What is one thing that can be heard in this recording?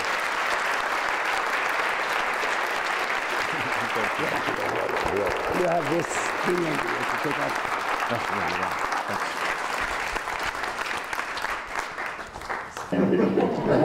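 An audience claps and applauds loudly in a large room.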